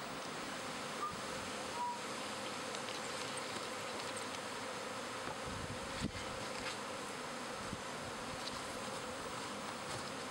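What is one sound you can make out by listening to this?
A cardboard box is set down and its flaps are folded with thumps and rustles.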